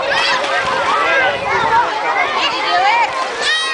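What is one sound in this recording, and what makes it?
Swimmers splash in the water.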